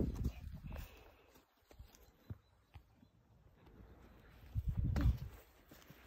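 Small footsteps crunch on dry grass.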